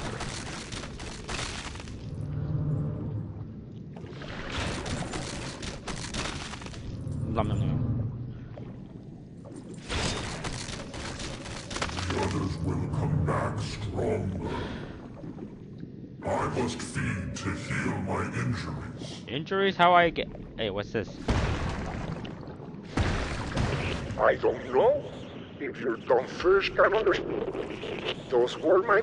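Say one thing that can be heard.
Water churns and rumbles in deep tones.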